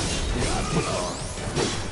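Metal clashes and scrapes, throwing off sharp grinding sounds.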